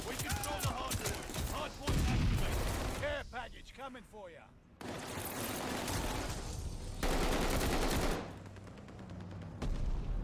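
A man talks excitedly into a headset microphone.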